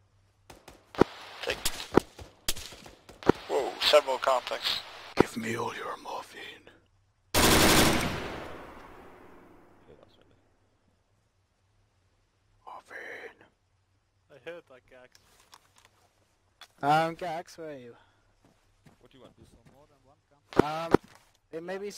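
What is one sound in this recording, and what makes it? A machine gun fires in short, loud bursts.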